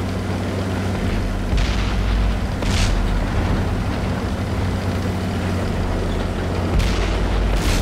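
A tank engine rumbles steadily as the tank drives.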